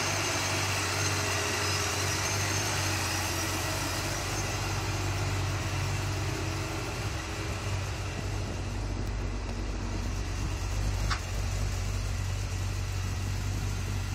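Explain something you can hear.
A car engine idles close by with a steady, deep rumble.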